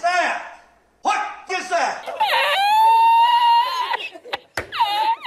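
An elderly man laughs loudly and uncontrollably.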